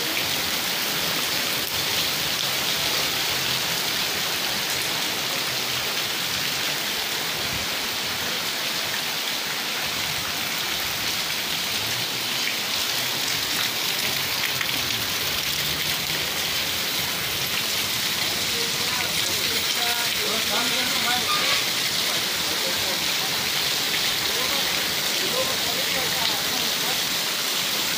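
Heavy rain pours steadily and splashes onto flooded pavement outdoors.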